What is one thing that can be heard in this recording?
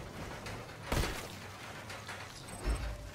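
A gun fires a loud shot.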